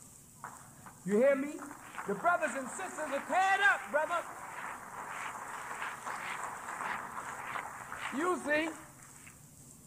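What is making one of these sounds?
A man speaks forcefully into a microphone, heard as an old tape recording.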